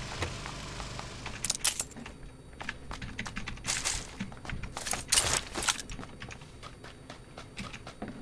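Footsteps thud and creak on a wooden floor.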